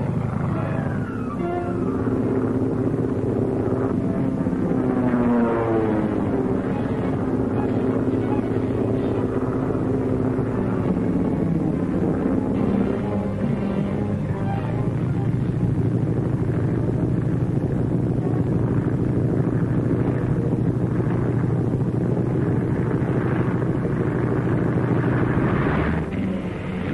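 A propeller plane's engine drones overhead and rises and falls in pitch.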